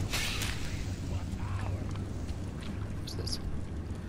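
Fire crackles and hisses in a burning hand.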